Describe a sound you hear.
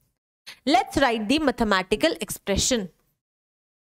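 A young woman speaks clearly into a headset microphone.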